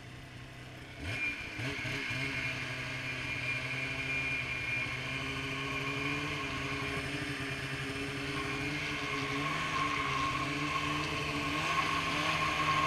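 A snowmobile engine revs up suddenly and roars steadily while riding.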